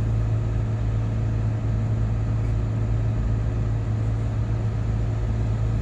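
A heavy diesel engine drones steadily from close by.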